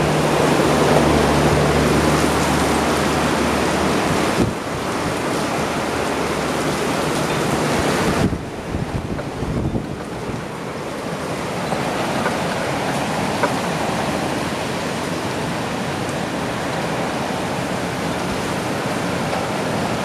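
Strong wind gusts and roars.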